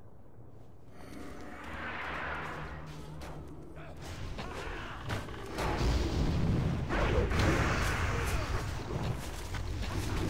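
Magic spells whoosh and crackle in a fierce battle.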